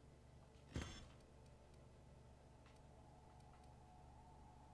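Soft interface clicks tick now and then as menu items are selected.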